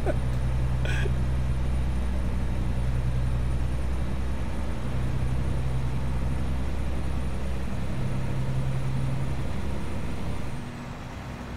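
A heavy truck engine drones deeply and steadily, then quiets.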